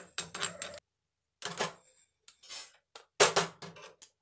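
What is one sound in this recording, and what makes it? Seeds rattle and scrape in a metal pan.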